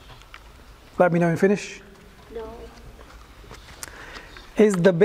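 A man speaks calmly in short phrases nearby, in a slightly echoing room.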